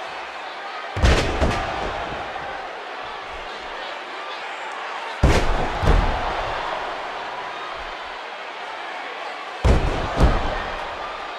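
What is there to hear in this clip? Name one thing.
Heavy bodies slam down hard onto a wrestling ring mat.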